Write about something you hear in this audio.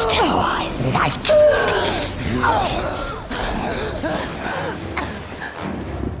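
A monstrous male voice growls and speaks menacingly, close by.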